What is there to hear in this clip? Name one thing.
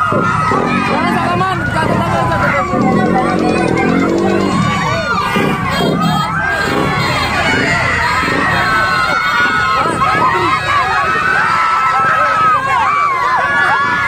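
A crowd of women and men cheer and shout excitedly outdoors.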